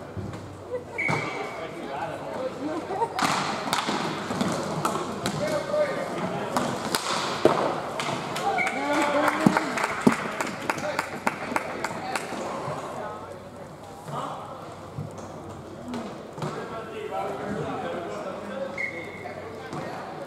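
A referee's whistle blows short, sharp blasts.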